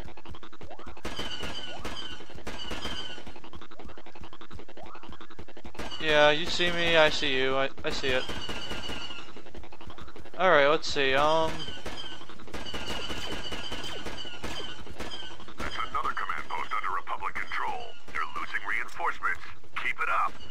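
Laser blasters fire in rapid bursts of shots.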